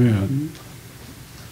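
A man speaks briefly into a microphone in an echoing room.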